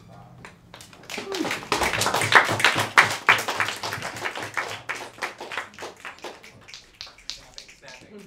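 An audience claps loudly.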